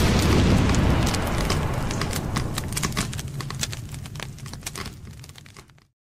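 A fire roars and crackles loudly, then slowly fades away.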